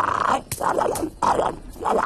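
A toad croaks.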